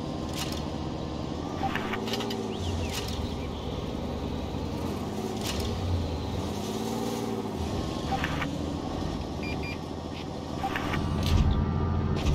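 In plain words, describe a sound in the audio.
A tank engine rumbles low and steadily as the tank drives, its pitch rising and falling.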